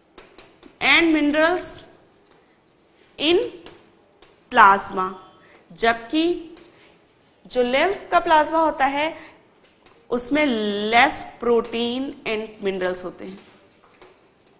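A young woman explains clearly into a close microphone.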